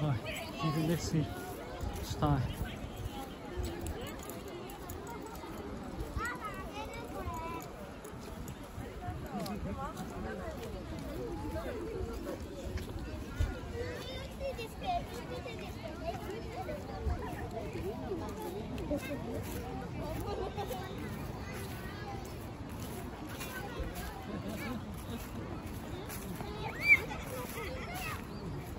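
A crowd of people chatter at a distance outdoors.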